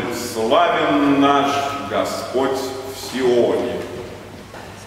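A man sings loudly in an echoing hall.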